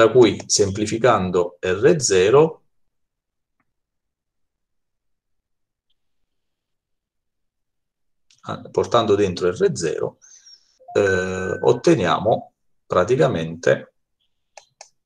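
A man speaks calmly over an online call, in bursts with pauses.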